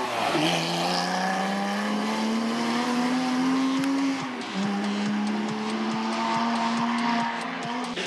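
A sports car engine roars as the car accelerates away and shifts gear.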